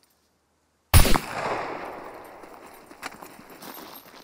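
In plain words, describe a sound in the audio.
A pistol fires a single loud shot that echoes off into the distance.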